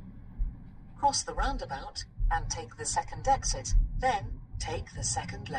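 A man speaks calmly inside a car, heard close by.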